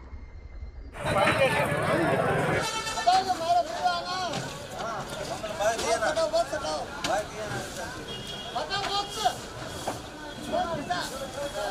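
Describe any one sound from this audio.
Men talk and call out nearby in a busy outdoor crowd.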